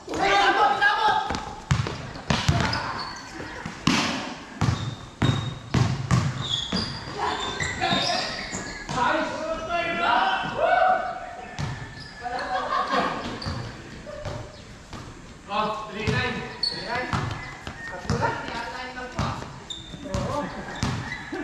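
Young men shout and talk to each other during play.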